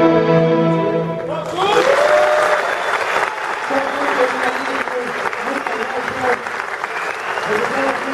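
A rock band plays loudly in a large hall.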